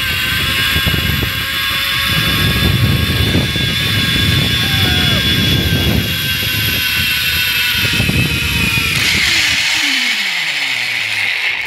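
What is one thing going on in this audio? A zip line trolley whirs and whines along a steel cable, its pitch dropping as it slows near the end.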